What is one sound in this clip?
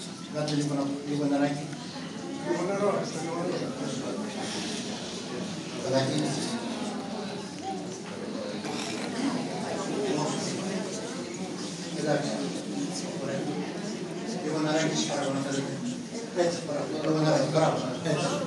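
A crowd of men and women murmurs quietly in a large echoing hall.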